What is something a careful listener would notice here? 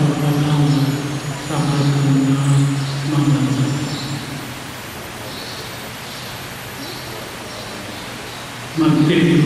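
An elderly man chants in a steady voice through a microphone in a large echoing hall.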